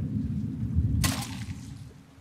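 A pistol fires a single shot.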